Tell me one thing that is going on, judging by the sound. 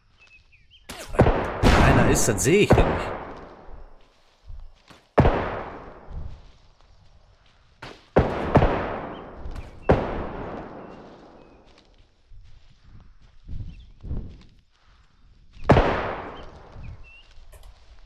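Loud shotgun blasts ring out, each echoing off into the distance.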